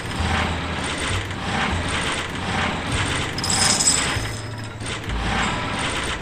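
Game jingles chime each time a win comes up.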